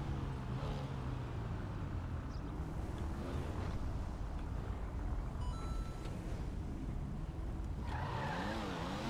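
A car engine rumbles and revs loudly.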